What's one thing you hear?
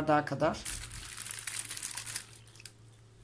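A thick liquid pours into a plastic bag.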